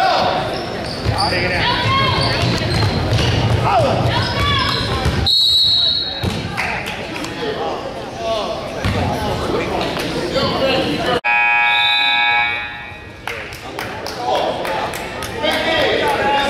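Players and spectators shout and call out in a large echoing gym.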